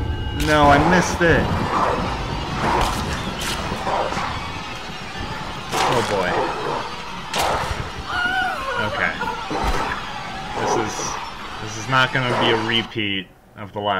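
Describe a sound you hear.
A wolf snarls and growls viciously.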